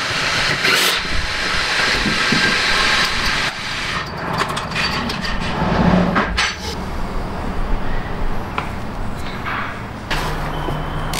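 A man talks calmly and closely.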